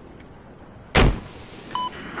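A rifle fires a single loud shot.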